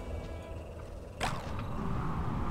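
A magical portal swirls and whooshes.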